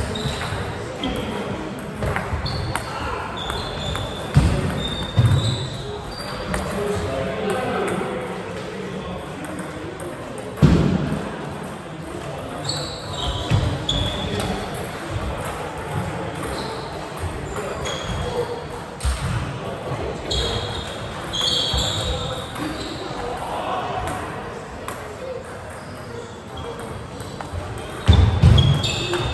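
Shoes squeak on a wooden floor.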